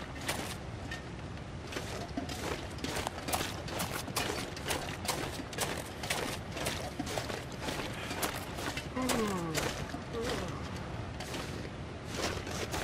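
Footsteps crunch through deep snow at a steady walking pace.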